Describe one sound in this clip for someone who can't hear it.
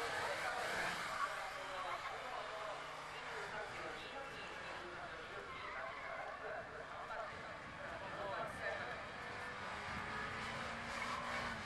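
A small car engine revs hard and rises in pitch.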